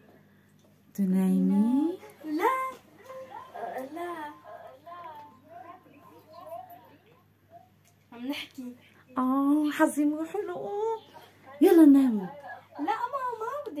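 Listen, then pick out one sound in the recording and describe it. Two young girls talk and laugh with animation close by.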